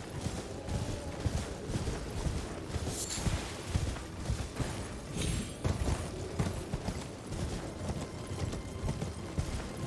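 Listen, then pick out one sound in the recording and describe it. A horse's hooves thud in a steady gallop over soft ground.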